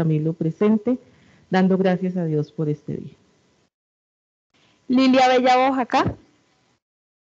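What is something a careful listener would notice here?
A woman speaks calmly into a microphone, heard through an online call.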